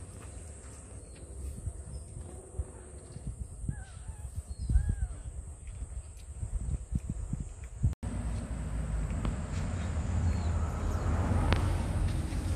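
A cat chews and crunches food close by.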